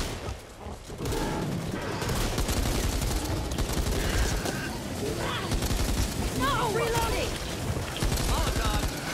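A heavy machine gun fires rapid, loud bursts.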